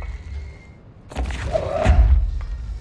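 A heavy metal door swings open with a loud thud.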